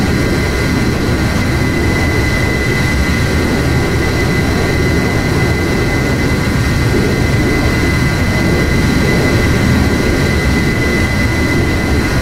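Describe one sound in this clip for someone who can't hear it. Wind rushes loudly past a jet's canopy.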